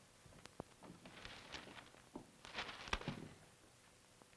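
A newspaper rustles and crinkles as it is folded.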